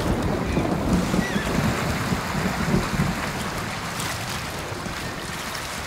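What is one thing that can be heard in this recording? Horses gallop over muddy ground.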